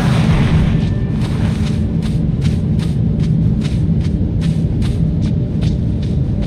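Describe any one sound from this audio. Footsteps crunch steadily on gravelly ground.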